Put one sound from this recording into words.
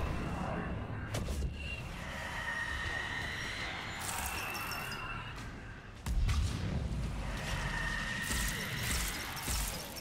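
Heavy footsteps thud on a metal floor.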